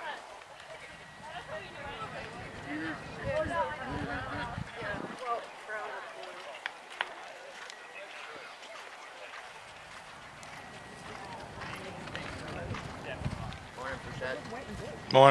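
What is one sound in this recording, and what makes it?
A horse's hooves thud rhythmically on soft ground as it canters.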